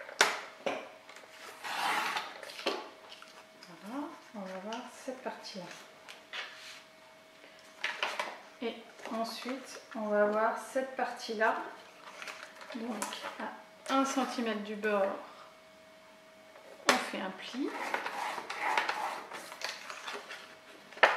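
Stiff card rustles and slides as it is handled.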